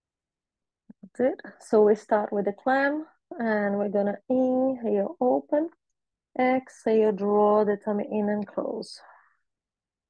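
A woman speaks calmly and clearly through a microphone.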